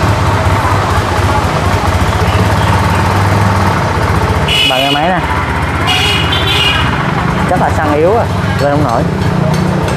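A motorcycle engine idles with a steady, throbbing rumble.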